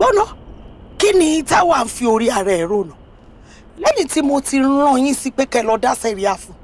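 A woman speaks with animation nearby.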